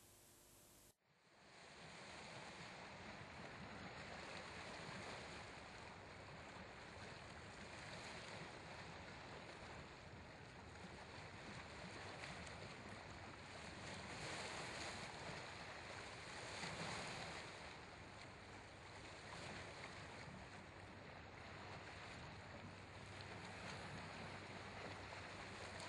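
Waves splash and wash against rocks.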